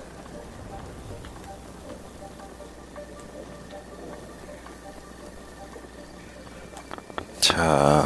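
Footsteps patter quickly across sandy ground.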